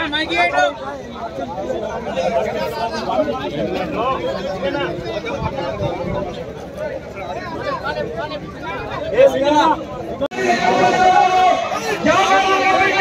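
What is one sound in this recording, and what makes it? A man speaks loudly to a crowd outdoors.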